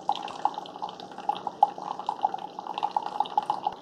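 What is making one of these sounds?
Coffee trickles from a brewer into a mug.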